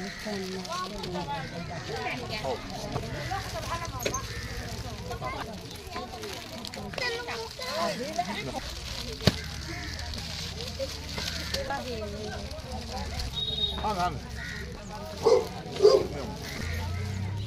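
Several women talk over one another nearby, outdoors.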